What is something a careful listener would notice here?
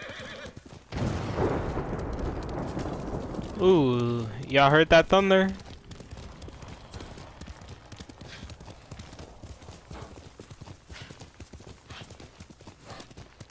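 Horse hooves thud rapidly on a dirt path.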